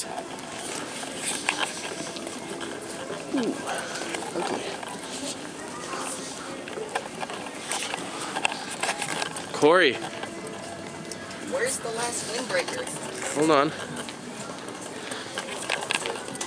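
Many people chatter in the background of a large indoor space.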